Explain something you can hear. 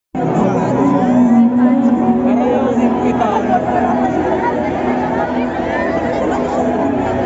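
Loud music plays through big loudspeakers.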